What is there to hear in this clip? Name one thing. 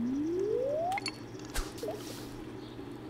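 A float plops into water.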